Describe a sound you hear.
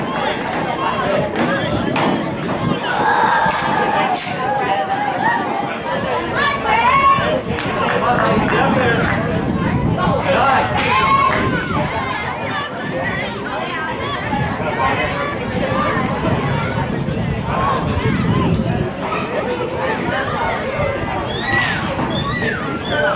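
Spectators shout and cheer from the sideline outdoors.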